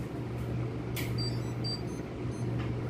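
An air conditioner gives a short electronic beep.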